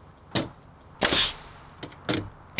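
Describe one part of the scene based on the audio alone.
A cordless drill whirs briefly, driving a screw into wood.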